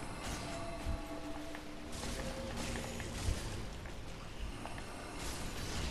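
A magic spell whooshes and hums.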